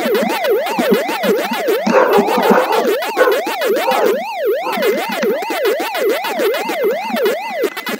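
Quick electronic chomping blips repeat rapidly.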